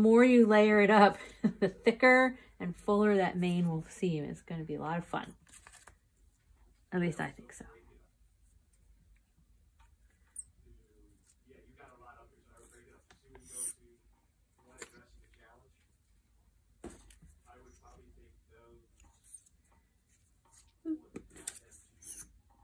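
Paper rustles softly as small pieces are pressed down.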